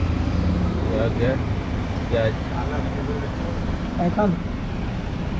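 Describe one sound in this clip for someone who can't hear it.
A man talks briefly nearby.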